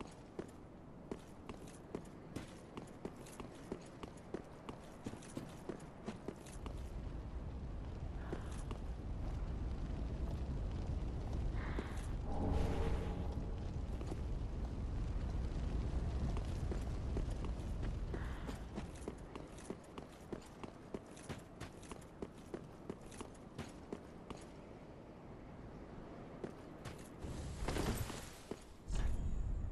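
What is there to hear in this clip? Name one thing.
Armoured footsteps run quickly over stone.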